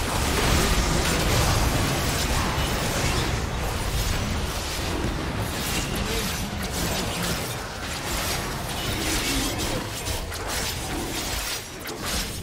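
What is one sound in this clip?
Magic blasts and weapon clashes of a fantasy battle whoosh and boom.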